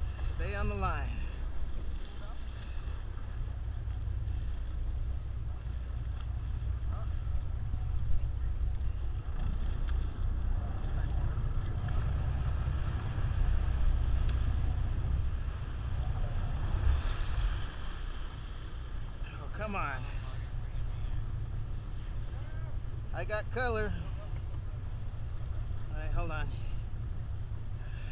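Water splashes and churns against the side of a boat.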